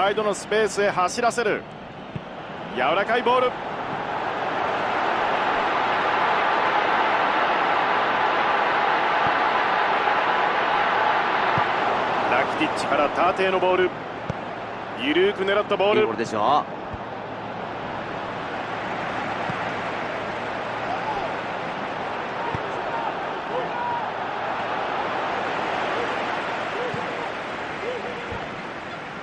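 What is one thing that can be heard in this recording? A stadium crowd roars.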